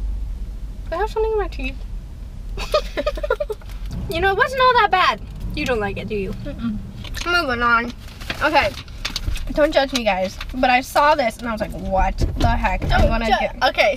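Two young women talk and laugh close by with animation.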